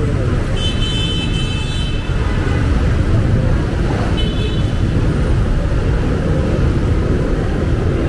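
A car drives slowly past.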